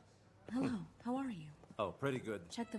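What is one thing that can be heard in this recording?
A woman answers briefly and calmly.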